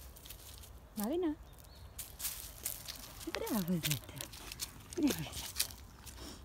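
A small dog whines in short high cries.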